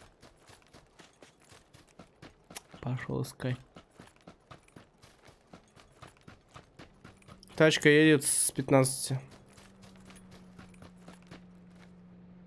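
Quick footsteps run over dry ground.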